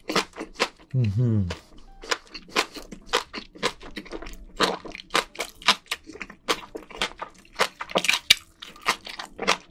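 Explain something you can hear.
A young man chews and slurps wet food loudly, close to a microphone.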